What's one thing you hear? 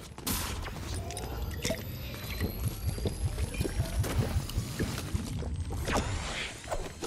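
A chest opens with a shimmering chime.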